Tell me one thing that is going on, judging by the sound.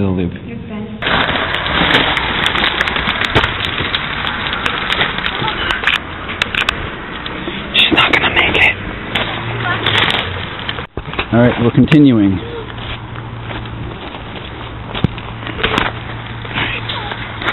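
Footsteps crunch on gravel and dry leaves.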